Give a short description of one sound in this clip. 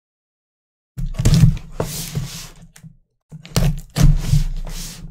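Hands slide and turn a cardboard box.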